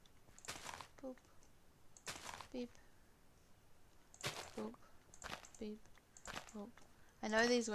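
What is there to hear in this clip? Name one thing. Small items are picked up with soft popping blips.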